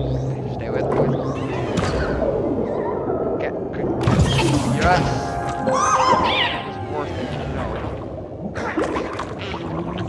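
Small creatures squeal and chirp as they fight underwater.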